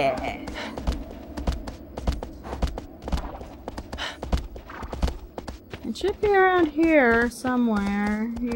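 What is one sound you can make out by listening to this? Horse hooves pound rhythmically on grass at a gallop.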